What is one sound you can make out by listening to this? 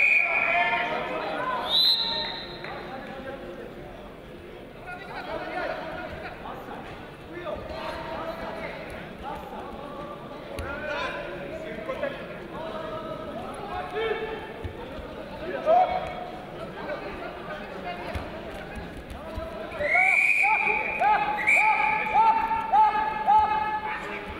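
Bare feet and bodies thump and shuffle on a wrestling mat.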